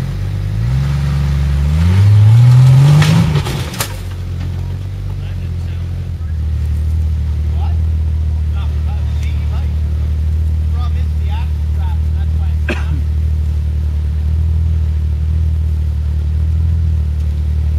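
An off-road vehicle's engine revs loudly, then idles with a low rumble.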